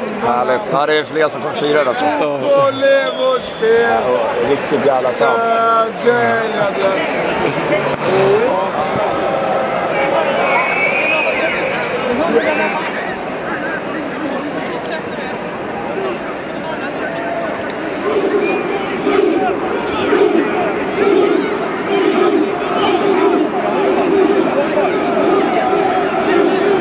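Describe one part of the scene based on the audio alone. A large crowd chants and cheers in a big echoing stadium.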